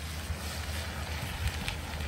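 Liquid pours into a hot pan.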